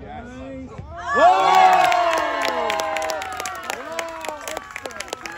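Young girls scream and cheer loudly in excitement.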